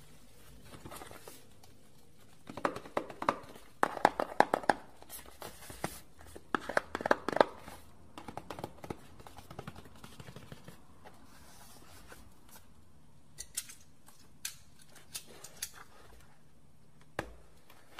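A cardboard box taps and scrapes as hands handle it.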